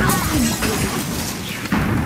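Wooden blocks crash and tumble down.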